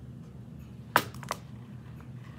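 A metal cuff bracelet clicks and clinks as it is handled.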